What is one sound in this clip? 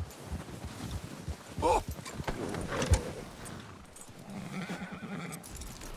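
Horse hooves crunch through deep snow.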